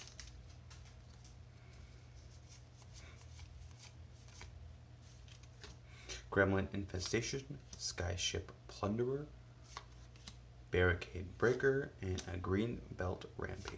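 Playing cards rustle and flick as they are shuffled.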